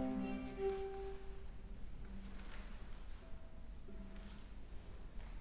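A piano plays soft chords.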